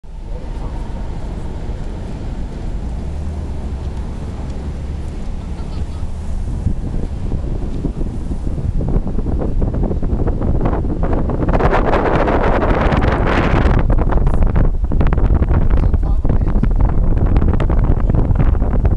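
Wind blows hard and rumbles outdoors.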